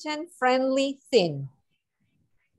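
A woman speaks briefly and brightly over an online call.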